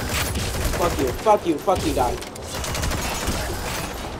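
A rifle fires several shots.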